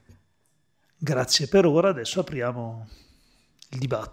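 A man speaks with animation into a microphone.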